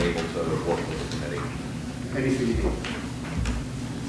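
Papers rustle as a man picks them up.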